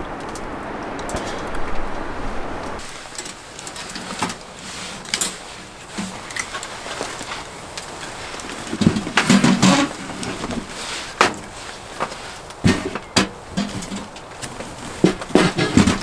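Pieces of firewood knock and clatter as they are handled.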